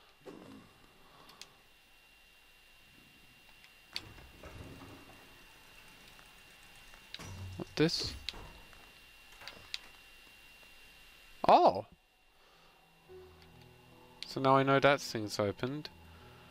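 Small footsteps patter softly.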